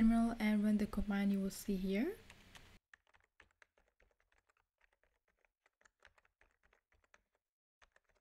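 Keys click softly on a keyboard.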